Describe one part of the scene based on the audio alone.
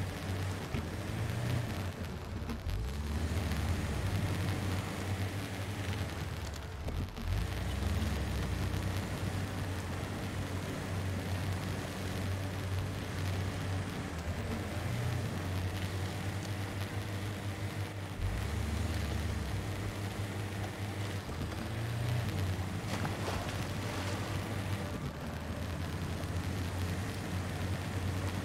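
An off-road engine rumbles low and revs up and down.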